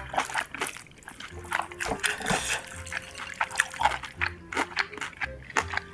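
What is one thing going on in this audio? A spoon scrapes and clinks against a baking dish.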